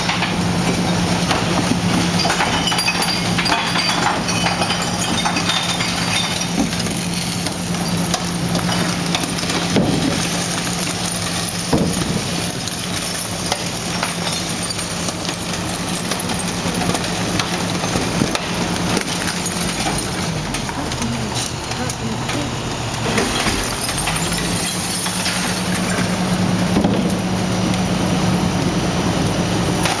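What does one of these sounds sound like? A garbage truck engine idles with a steady low hum.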